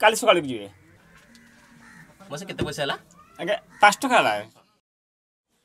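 An older man answers calmly nearby.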